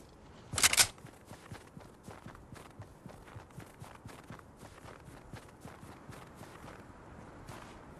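Footsteps crunch quickly on snow.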